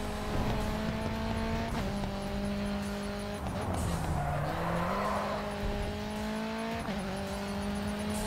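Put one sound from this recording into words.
A racing car engine roars at high revs, shifting gears up and down.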